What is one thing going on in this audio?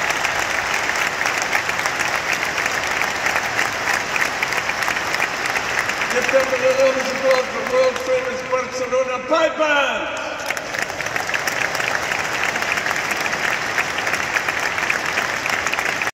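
A large audience applauds loudly in a big echoing hall.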